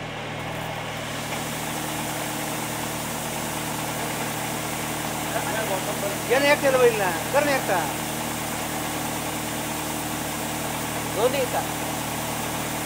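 Sprayer nozzles hiss steadily as they release a fine mist.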